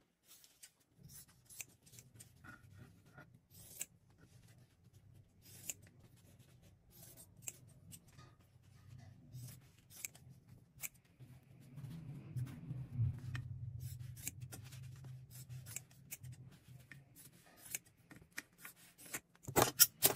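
Paper rustles and crinkles under a hand.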